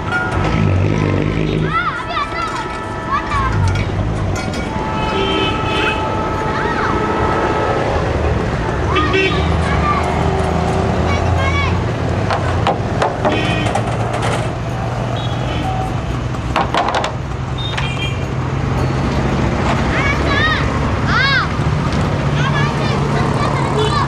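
Train wheels squeal and screech on the rails.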